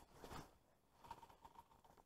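A fishing reel whirs as its handle is turned.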